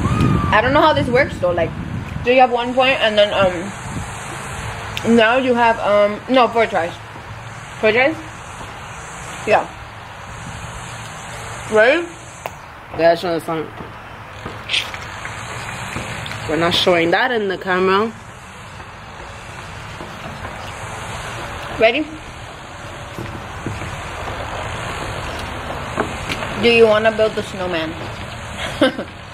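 Another young woman answers casually close by.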